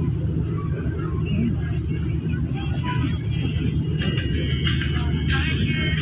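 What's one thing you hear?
Water laps against a pier.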